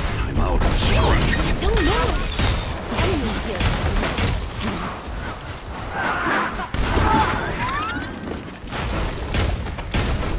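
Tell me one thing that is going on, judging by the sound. Ice cracks and shatters.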